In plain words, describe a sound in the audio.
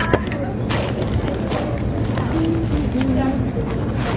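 Paper wrapping rustles close by.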